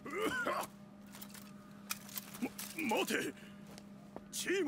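A man calls out urgently.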